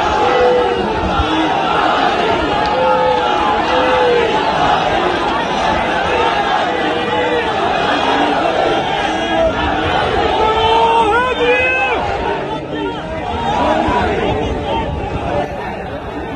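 A huge crowd chants loudly outdoors.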